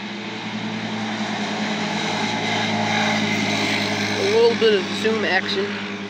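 A side-by-side utility vehicle's engine drones as it drives past.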